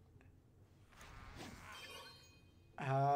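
A magical spell bursts with a shimmering chime.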